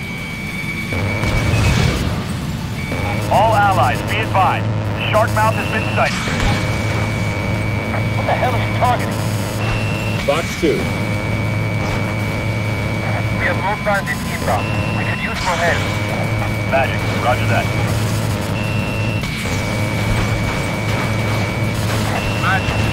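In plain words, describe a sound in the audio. A rapid-fire cannon rattles in long bursts.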